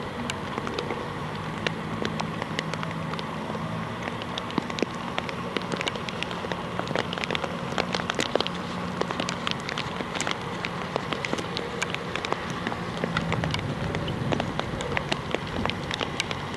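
A horse's hooves thud rhythmically on soft sand.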